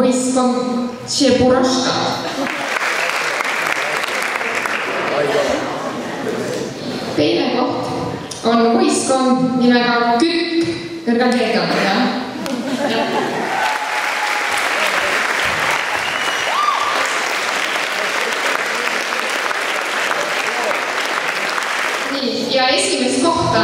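A young woman speaks through a microphone and loudspeaker.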